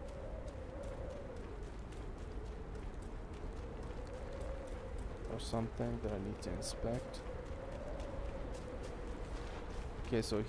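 Footsteps run over gravel and dirt.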